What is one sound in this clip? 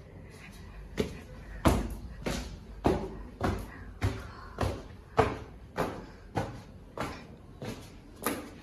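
Footsteps thud steadily on wooden stairs.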